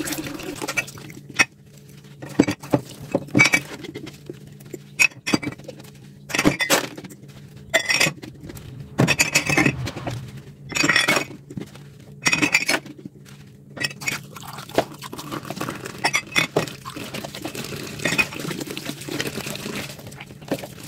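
Glass mugs clink and knock against each other in a sink.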